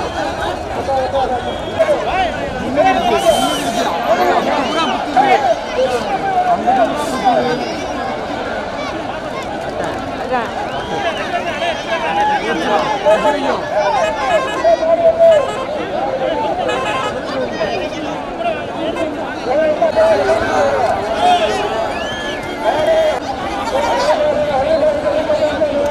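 A large outdoor crowd shouts and cheers loudly throughout.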